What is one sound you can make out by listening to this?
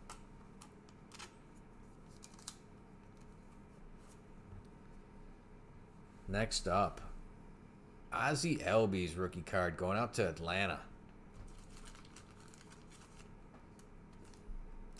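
Trading cards rustle and slide between hands close by.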